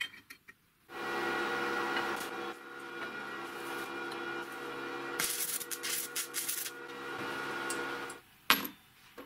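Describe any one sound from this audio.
A welding torch buzzes and crackles steadily.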